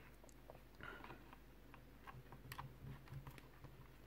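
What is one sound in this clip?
A screwdriver turns a small screw with faint clicks.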